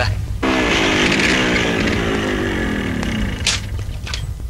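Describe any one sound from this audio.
A motorcycle engine runs and slows down as the motorcycle comes to a stop.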